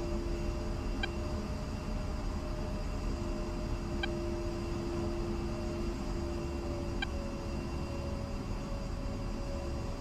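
The twin turbofan engines of an A-10 attack jet whine as it taxis.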